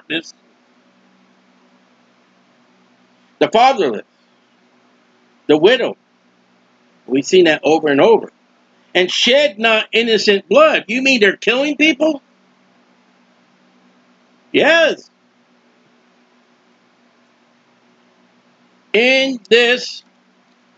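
A man speaks close to a microphone, slowly and with pauses.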